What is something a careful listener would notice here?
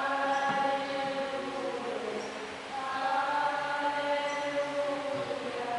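A woman sings into a microphone, echoing in a large hall.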